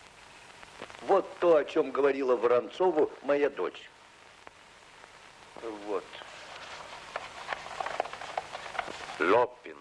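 An elderly man talks with animation.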